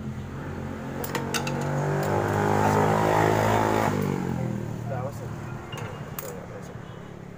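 Metal parts clink and tap against each other.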